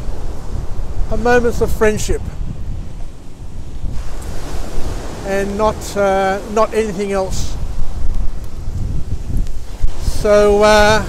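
Wind blows loudly across the microphone.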